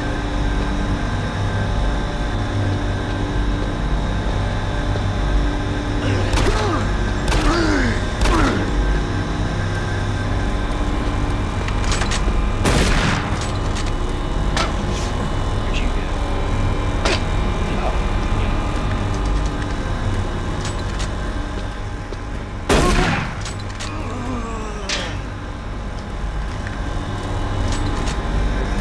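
A low mechanical hum drones steadily throughout.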